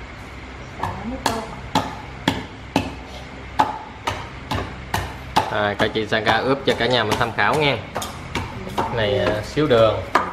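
A pestle pounds rhythmically in a mortar.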